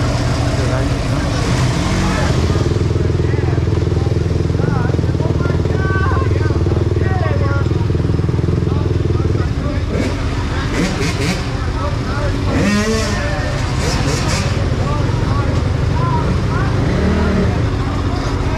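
Young men talk and shout over the engines.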